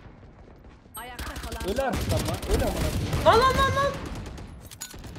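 Rapid gunfire bursts out.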